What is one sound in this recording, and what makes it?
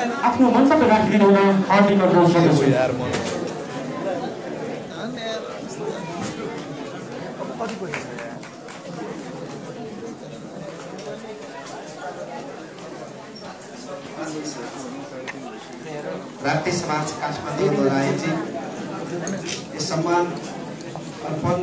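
A crowd of men and women chatters loudly in a large echoing hall.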